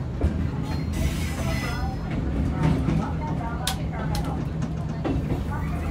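An electric train rumbles along the track, heard from inside the cab.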